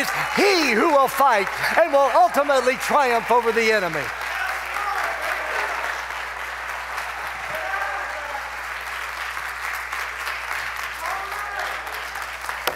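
A middle-aged man speaks loudly and with animation through a microphone in a large echoing hall.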